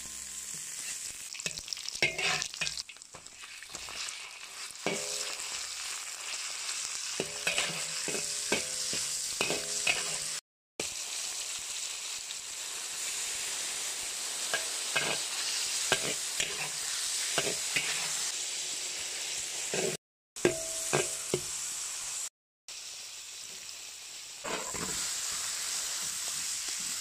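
Food sizzles and spits in hot oil in a wok.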